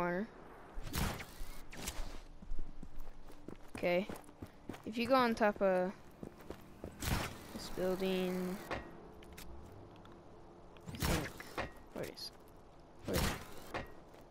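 A grappling line fires with sharp snapping thuds.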